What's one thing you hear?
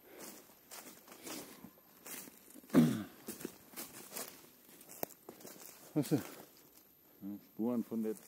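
Footsteps crunch on dry twigs and leaves.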